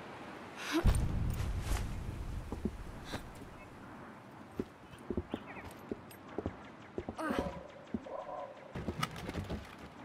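Hands scramble and knock against a wooden tower while climbing.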